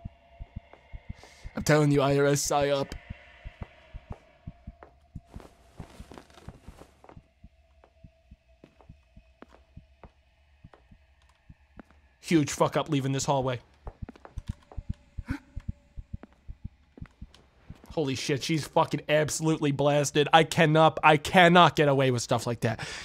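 Slow footsteps thud on a wooden floor.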